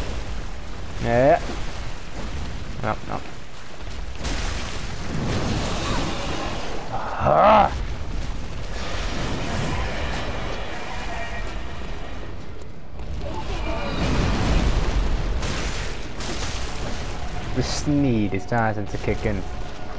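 A monstrous creature lets out loud, wavering shrieks.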